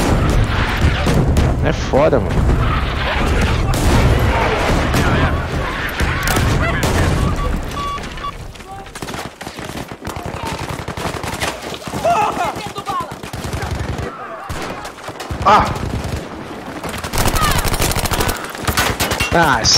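Gunshots crack rapidly in bursts, close by.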